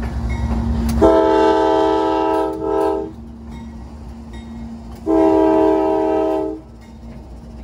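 A locomotive horn blares loudly in two long blasts.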